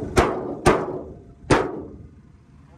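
Plastic clips snap loudly on a car's front panel.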